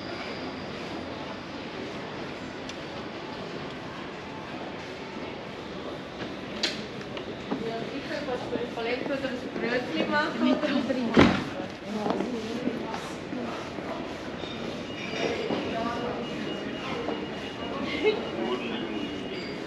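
A hand cart rattles over cobblestones.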